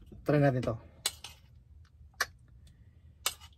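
Utensils click against a plate.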